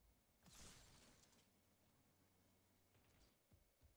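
Plastic film crinkles as a man peels it off.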